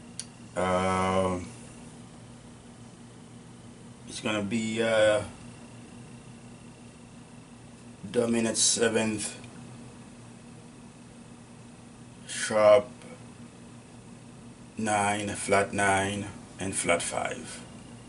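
An elderly man speaks calmly and close by, in short phrases with pauses.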